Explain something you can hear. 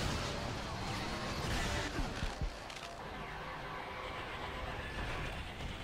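A laser cannon blasts with a roaring hum.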